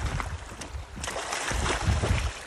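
Water splashes briefly.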